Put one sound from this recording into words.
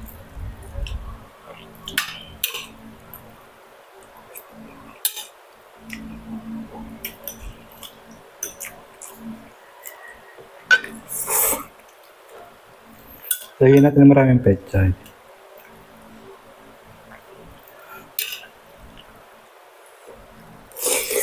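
A man chews food noisily up close.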